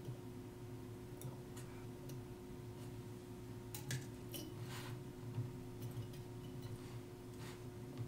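Metal tweezers tick and click softly against small watch parts.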